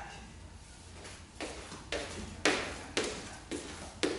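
Shoes step on a wooden floor.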